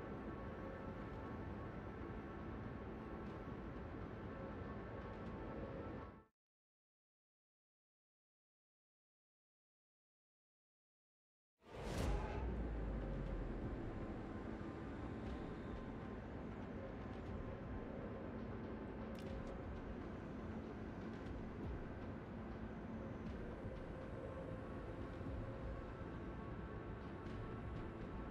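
Water rushes steadily past a ship's hull.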